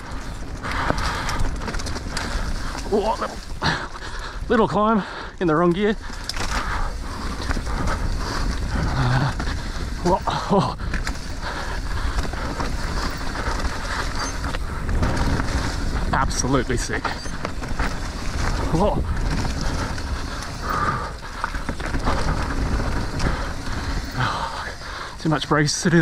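Bicycle tyres crunch and rustle over dirt and dry leaves.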